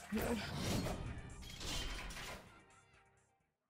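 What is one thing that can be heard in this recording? Magical sound effects flare and whoosh.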